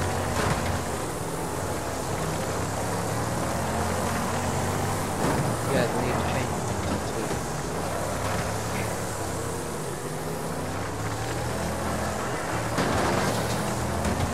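A banger race car engine roars at full throttle.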